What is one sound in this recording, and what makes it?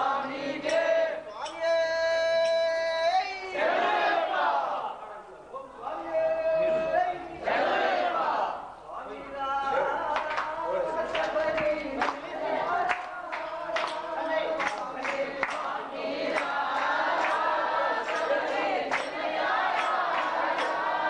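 Men chant together loudly nearby.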